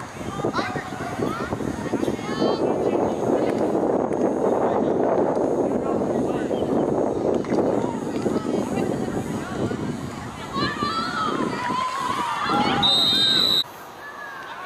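A crowd of spectators cheers and shouts outdoors.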